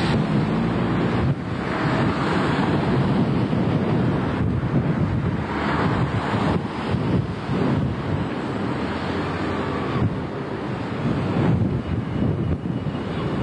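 A bus engine idles and rumbles nearby.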